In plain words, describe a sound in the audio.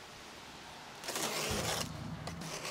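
A knife slits packing tape on a cardboard box.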